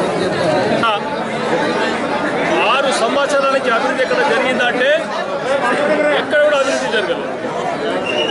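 A middle-aged man speaks forcefully into microphones close by.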